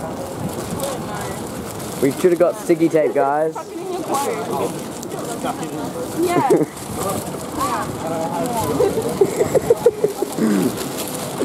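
Newspaper pages rustle and crinkle close by.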